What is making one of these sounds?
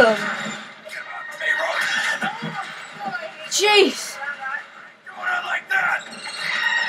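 Battle sounds from a video game blare from a television speaker.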